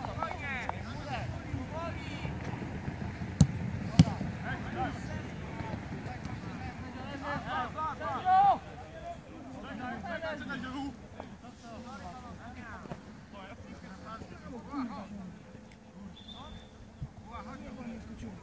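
Young men shout and call out to each other across an open outdoor field.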